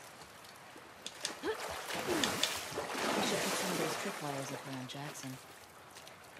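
Water splashes as someone wades through it.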